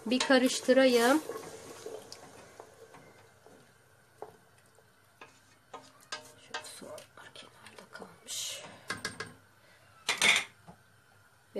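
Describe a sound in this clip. A wooden spoon scrapes and knocks against a metal pot.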